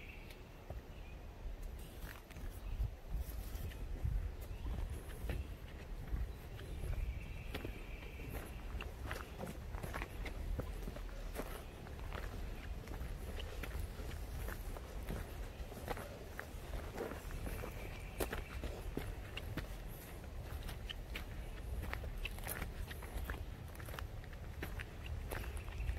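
Footsteps crunch steadily on a dirt and gravel path.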